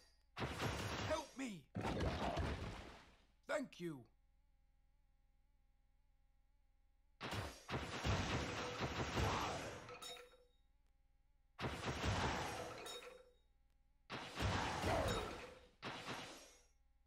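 Magic blasts whoosh and crackle in short bursts.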